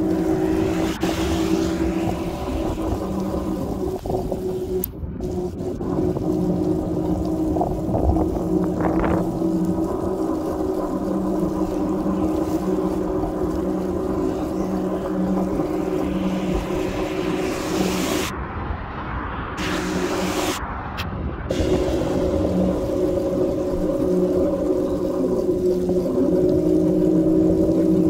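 A vehicle's engine hums steadily from inside.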